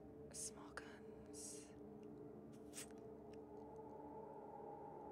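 Calm electronic music plays steadily.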